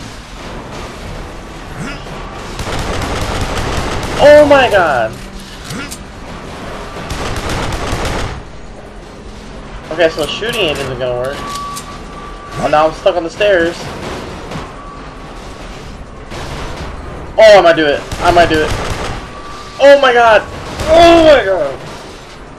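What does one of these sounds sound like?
A pistol fires repeated shots.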